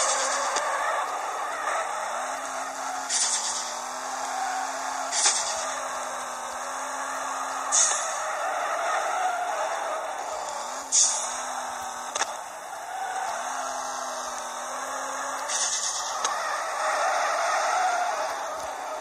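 Tyres screech steadily as a car drifts.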